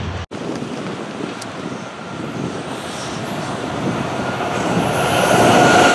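A passenger train approaches, its noise growing louder.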